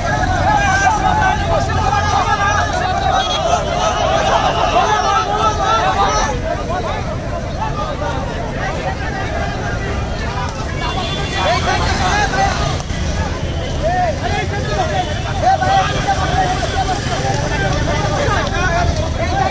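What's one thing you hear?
Many young people talk loudly among themselves nearby.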